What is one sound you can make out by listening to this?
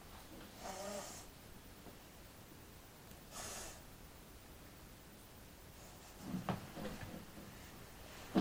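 A young boy speaks in short bursts close to the microphone.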